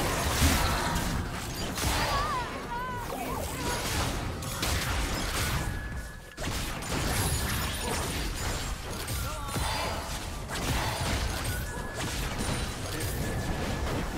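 Spell effects and weapon hits clash and crackle in a busy game fight.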